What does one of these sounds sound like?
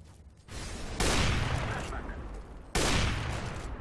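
A sniper rifle fires with loud, echoing bangs.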